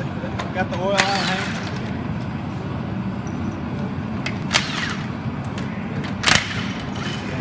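An impact wrench rattles in short bursts.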